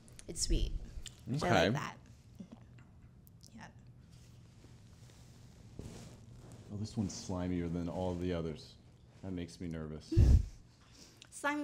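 A woman laughs with animation into a close microphone.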